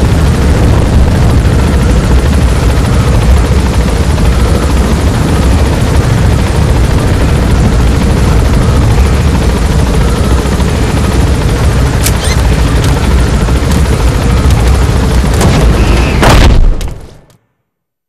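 A helicopter's rotor drones loudly and steadily.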